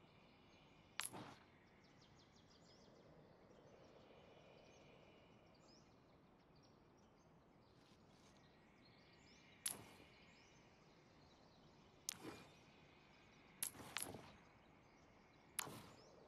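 Short interface clicks sound as menu pages are flipped.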